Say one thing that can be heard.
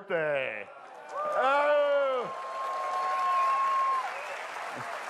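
People in a crowd cheer and whoop.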